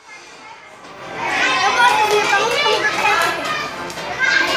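A group of children sing together in an echoing room.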